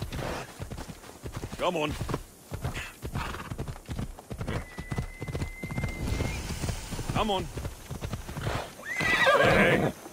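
A horse's hooves gallop and thud on a dirt path.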